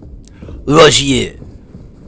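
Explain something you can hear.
Footsteps run on a stone floor.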